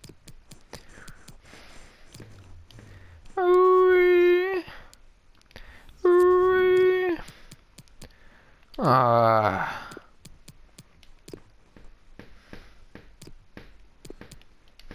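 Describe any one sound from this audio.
Short menu clicks tick repeatedly.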